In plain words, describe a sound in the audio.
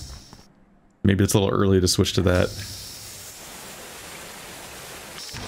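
A gas spray hisses in a short burst.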